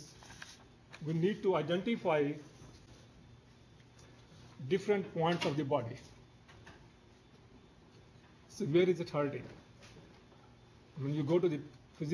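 An elderly man speaks calmly in short phrases with pauses, through a microphone.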